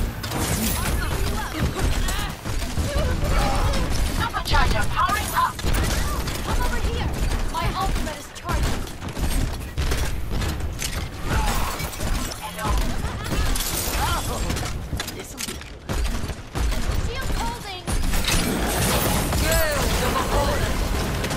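Video game explosions boom.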